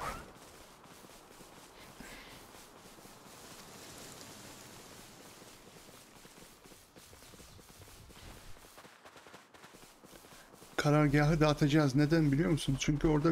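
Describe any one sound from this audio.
Heavy paws thud softly on grass at a steady run.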